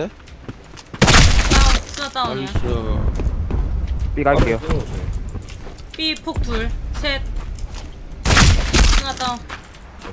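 Gunshots ring out loudly, echoing briefly.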